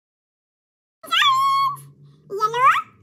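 A woman talks softly to a small child.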